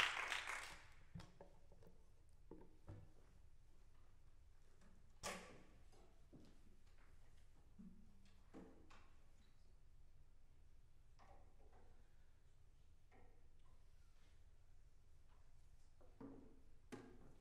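Wooden instruments knock and clatter as they are set down and picked up in an echoing hall.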